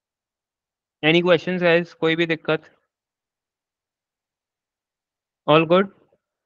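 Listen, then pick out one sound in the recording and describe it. A young man speaks calmly and close to a microphone, in short bursts.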